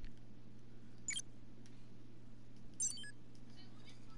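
A game menu beeps as options are selected.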